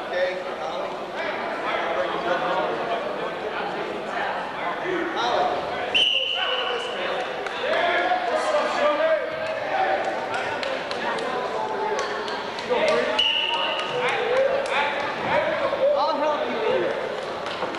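A crowd of people chatters and shouts in an echoing hall.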